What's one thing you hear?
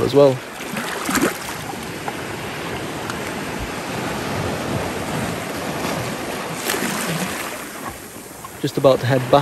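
Waves surge and splash against rocks close by.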